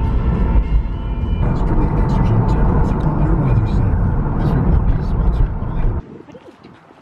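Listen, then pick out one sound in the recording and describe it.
A car engine and tyres rumble steadily from inside a moving car.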